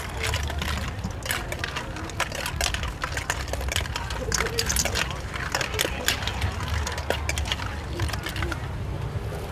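A metal spoon clinks and scrapes in a steel bowl while mixing food.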